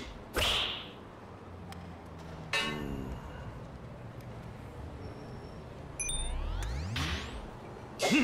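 A golf club swings through the air with a sharp whoosh.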